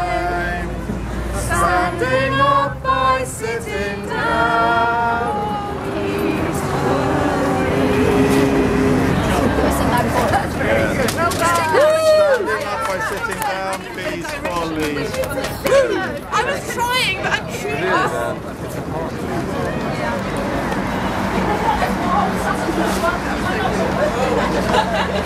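A crowd of protesters chants and cheers outdoors.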